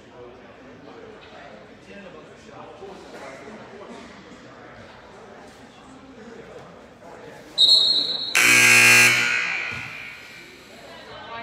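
Spectators murmur and call out faintly in a large echoing gym.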